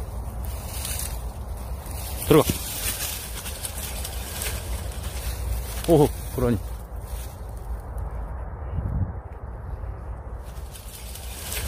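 Dry grass rustles as a dog pushes through it.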